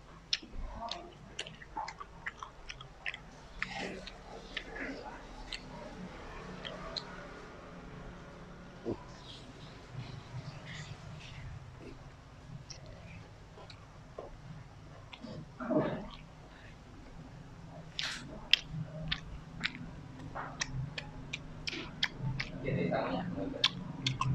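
Fingers pick and scrape at food on a leaf with soft crackles.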